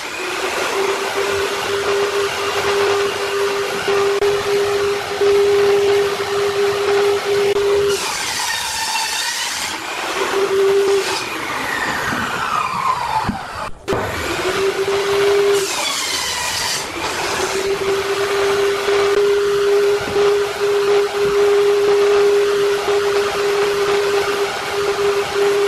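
A table saw blade whirs steadily.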